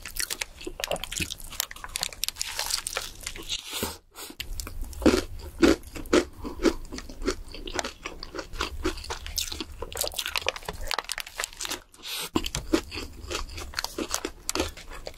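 A young woman chews and smacks her lips loudly near a microphone.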